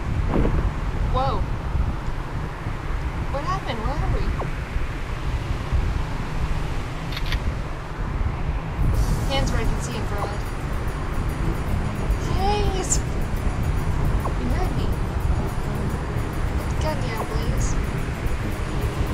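A young woman talks casually and close to a microphone.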